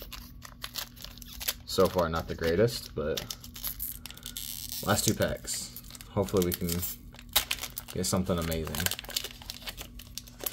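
A foil booster pack crinkles and tears open in someone's hands.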